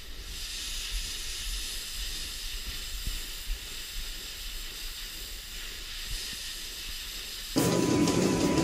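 A pressure washer sprays water onto a hard floor with a steady hiss.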